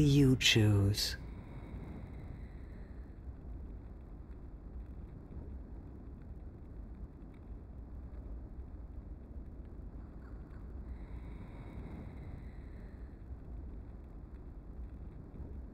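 Stormy sea waves surge and churn.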